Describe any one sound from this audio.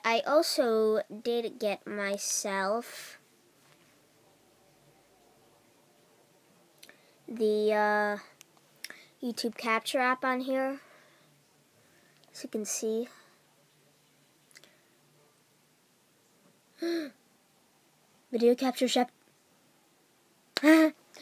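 A boy talks close to a microphone, in short bursts with pauses.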